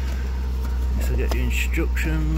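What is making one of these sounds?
A cardboard box rustles and scrapes as a hand handles it.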